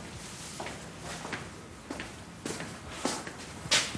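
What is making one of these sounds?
Footsteps cross a wooden floor.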